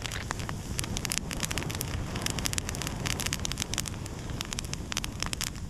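A campfire crackles and pops close by.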